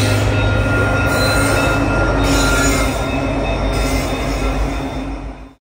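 Diesel locomotives rumble and drone loudly close by.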